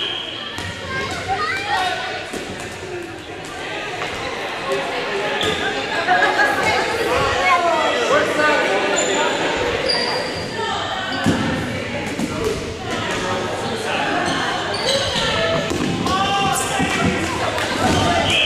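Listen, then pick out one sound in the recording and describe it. Rubber balls bounce and thump on a wooden floor.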